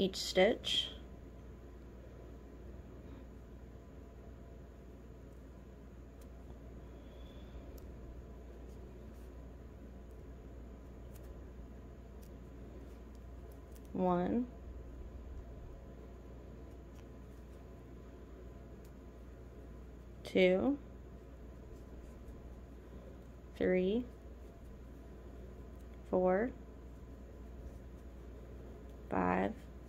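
A crochet hook softly rustles and pulls through yarn.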